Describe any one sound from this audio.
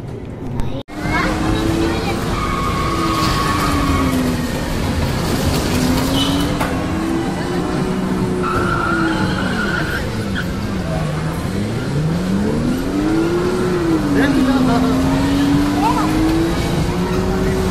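A racing arcade game's engine sound whines, rising and falling in pitch.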